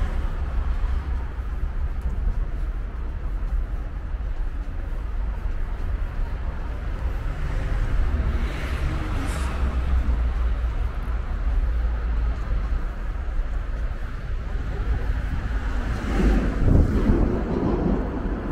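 Outdoors, wind rumbles against the microphone.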